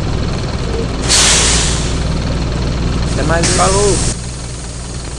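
Bus doors open and close with a sharp pneumatic hiss.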